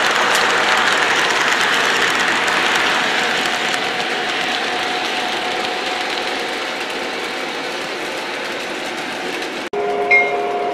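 A model train rumbles and clatters along its track.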